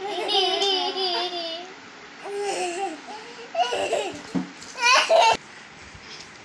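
A young boy giggles close by.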